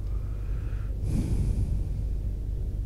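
A book is lifted with a soft rustle.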